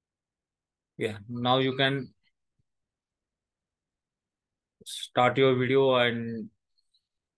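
A young man speaks slowly and clearly into a close microphone, pronouncing sounds one at a time.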